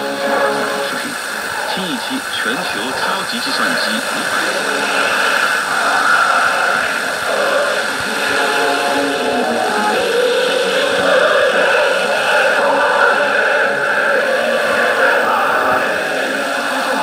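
A small radio plays music, heard through its little speaker.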